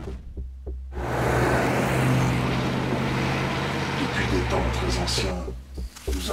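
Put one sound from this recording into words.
A car drives past on a road.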